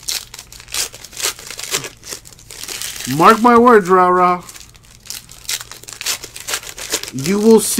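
A foil wrapper crinkles and rustles as it is torn open.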